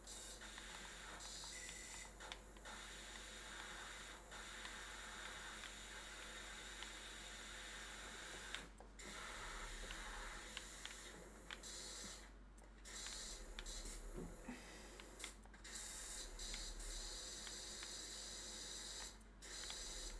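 A pressure washer sprays water with a steady hiss that briefly cuts out now and then.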